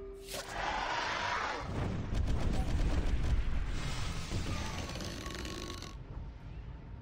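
Magic blasts whoosh and crackle in a fantasy battle.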